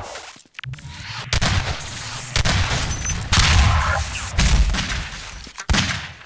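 Gunfire bursts in rapid shots.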